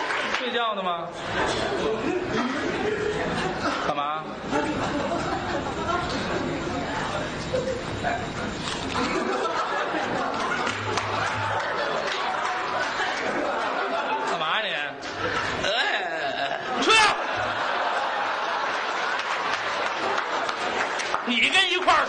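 A second middle-aged man answers through a microphone in a lively back-and-forth.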